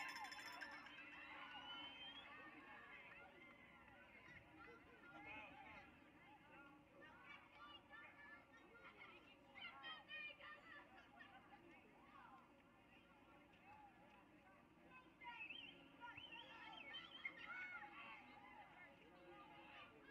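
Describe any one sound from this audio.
A crowd of spectators and players shouts and cheers outdoors.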